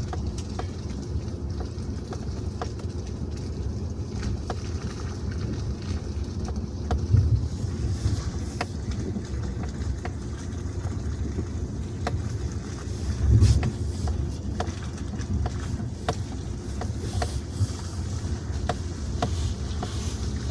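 Tyres crunch over packed snow and slush.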